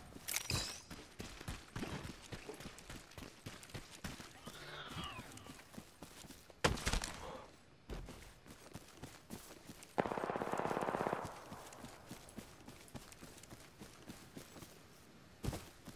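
Footsteps patter quickly over grass and dirt.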